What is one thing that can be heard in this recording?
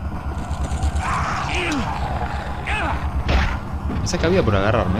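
A man talks with animation close to a microphone.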